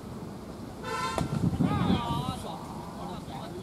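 Young men shout loudly outdoors.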